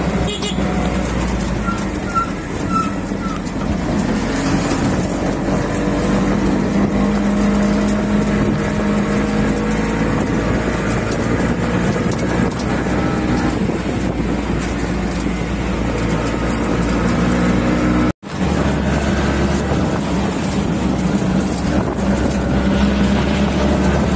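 Wind rushes past an open vehicle.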